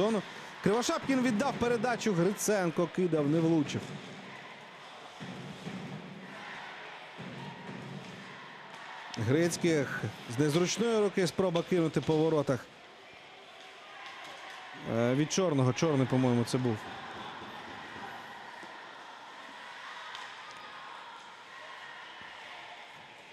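Ice skates scrape and hiss across ice in a large echoing arena.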